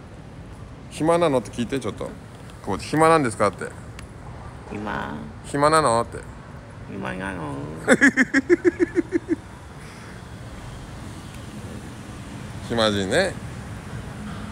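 A middle-aged man speaks casually, close to the microphone.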